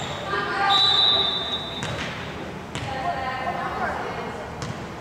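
Young girls call out to each other in a large echoing gym.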